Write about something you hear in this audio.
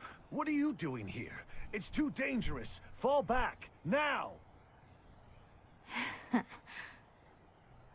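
A young man speaks with animation through a headset microphone, close up.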